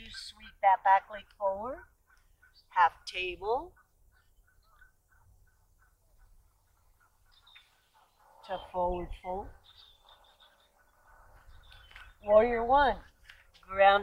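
A woman speaks calmly and closely, pausing between phrases.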